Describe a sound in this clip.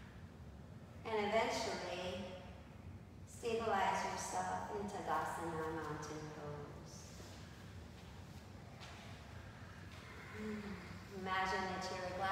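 A woman speaks calmly in an echoing room.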